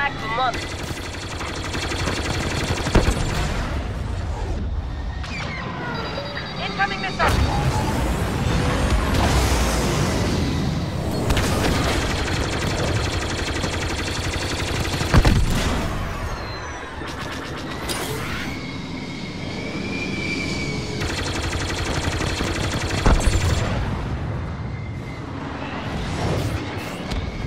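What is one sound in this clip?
Laser cannons fire in quick bursts.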